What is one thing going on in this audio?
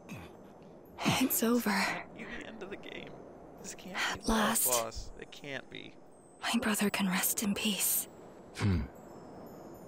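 A young woman speaks quietly and sadly.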